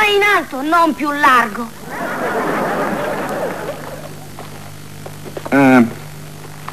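A young boy speaks in a high, lively voice.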